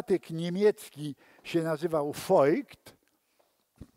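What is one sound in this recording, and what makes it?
An elderly man speaks calmly in a room.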